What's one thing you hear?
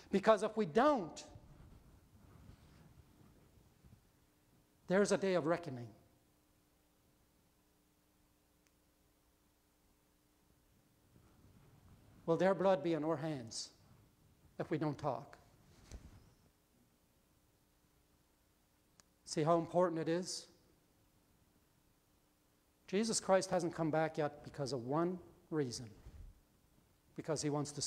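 An older man speaks slowly and calmly through a microphone, with long pauses, in a room with a slight echo.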